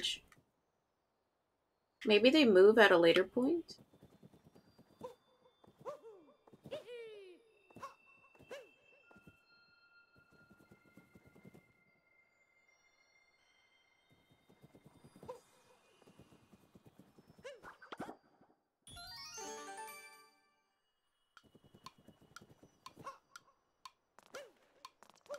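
Short cartoonish sound effects chirp and thump as a game character runs and jumps.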